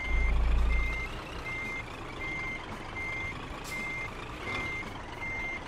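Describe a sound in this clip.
A semi-truck engine rumbles low while reversing.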